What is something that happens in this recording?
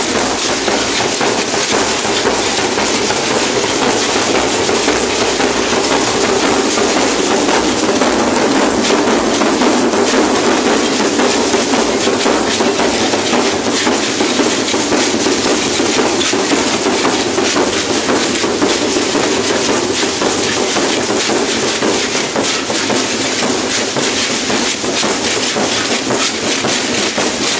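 Drummers beat big drums loudly in a rhythm outdoors.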